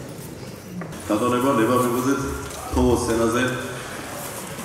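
A man speaks into a microphone, heard through loudspeakers in a large hall.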